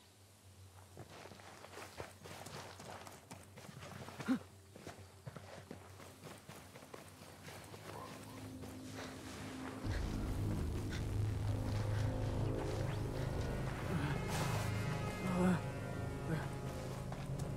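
Footsteps tread quickly over grass and earth.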